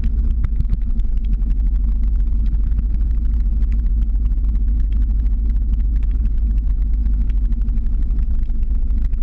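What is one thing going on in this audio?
Skateboard wheels roll and rumble steadily on asphalt.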